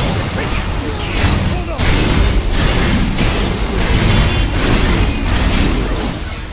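Blasts and explosions crash and roar continuously.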